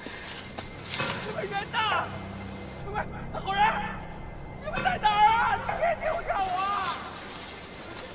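A young man calls out urgently.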